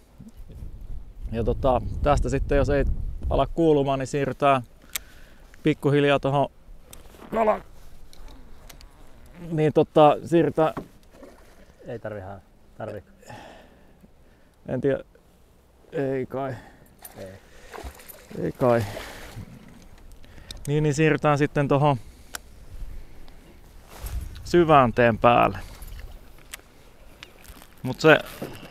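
A man talks calmly, close to a microphone.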